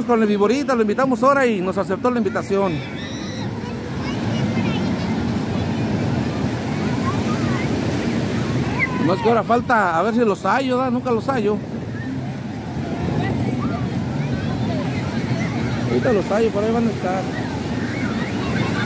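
Waves break and wash steadily onto the shore.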